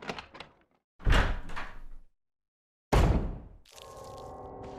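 A heavy door thuds and creaks open.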